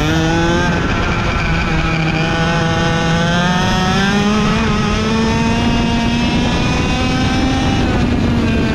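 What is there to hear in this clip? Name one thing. A kart engine buzzes loudly close by, its pitch rising and falling as it speeds up and slows.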